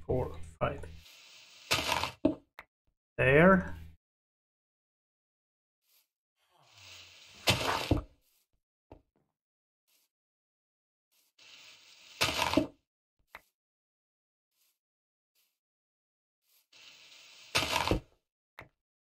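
A block breaks with a crunchy, crumbling thud a few times.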